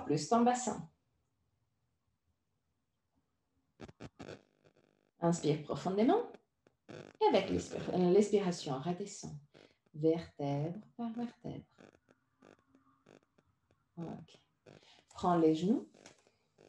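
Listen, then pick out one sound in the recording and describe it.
A woman speaks calmly and softly.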